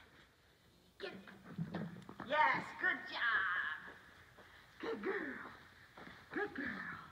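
A woman talks to a dog with animation, close by, in a large echoing hall.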